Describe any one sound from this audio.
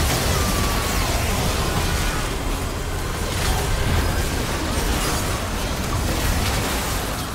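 Magic spells crackle and boom in a fast fight.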